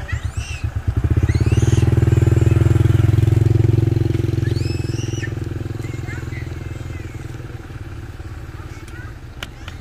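A motorbike engine starts and runs steadily, then slowly quietens.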